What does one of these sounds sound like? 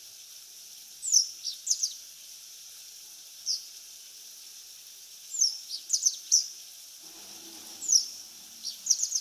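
A magpie gives short, harsh chattering calls in bursts.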